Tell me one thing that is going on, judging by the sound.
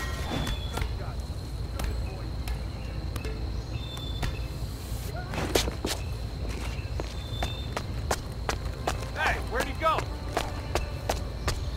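Footsteps tread softly and steadily on a hard floor.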